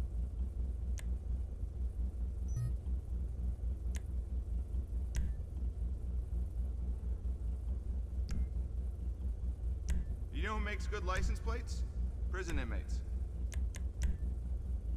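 Menu clicks tick now and then.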